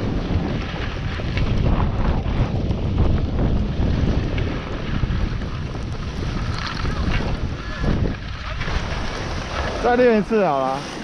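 Wind rushes past loudly while skiing fast downhill.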